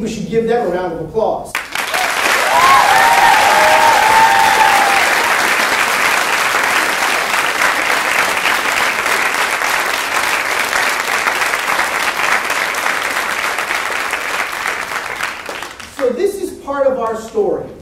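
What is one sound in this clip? A man speaks to an audience through a microphone in a large hall.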